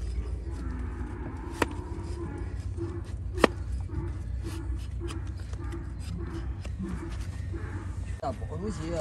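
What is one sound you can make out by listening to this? A metal blade scrapes and chops at a horse's hoof.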